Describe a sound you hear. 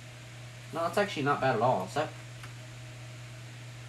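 Fingers tap lightly on a computer keyboard.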